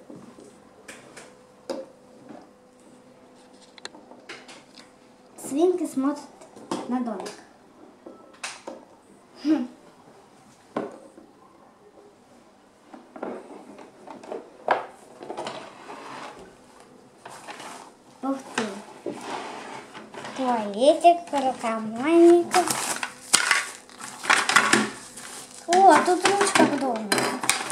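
Plastic toys click and knock on a wooden table.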